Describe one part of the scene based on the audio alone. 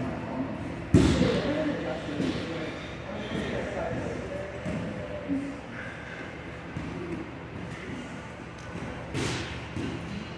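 Bodies thud onto a padded mat.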